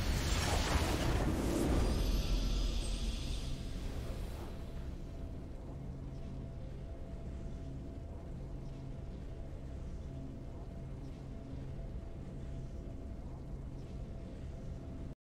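Triumphant game music plays, loud at first and then settling into a soft, steady tune.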